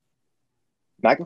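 A young man speaks briefly over an online call.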